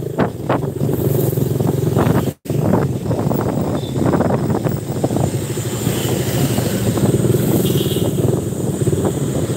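Wind rushes past while riding outdoors.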